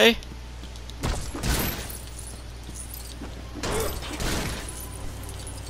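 Wooden crates smash and clatter apart.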